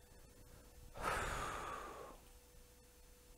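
A middle-aged man takes a deep breath.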